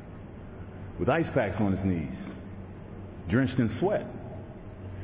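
A man speaks hesitantly into a microphone.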